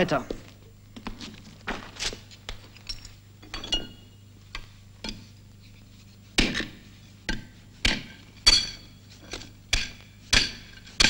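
A glass bottle clinks and taps in a man's hands.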